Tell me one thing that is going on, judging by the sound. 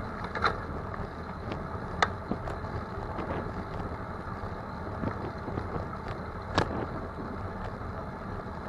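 Tyres roll over pavement with a steady rumble.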